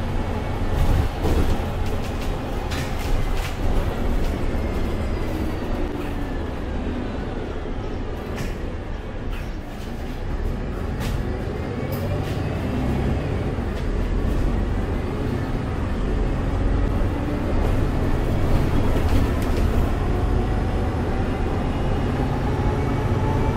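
A bus interior rattles and clicks over bumps.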